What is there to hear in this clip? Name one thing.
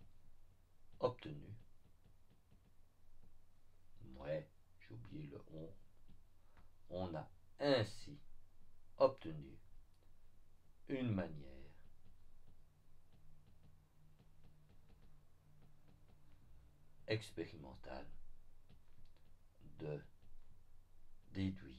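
A man speaks calmly and slowly into a close microphone, with pauses.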